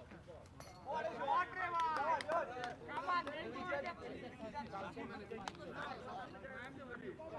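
A crowd of spectators chatters in the distance.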